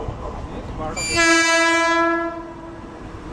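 A train horn blares loudly and steadily.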